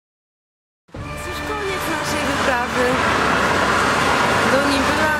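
A young woman talks cheerfully close to the microphone.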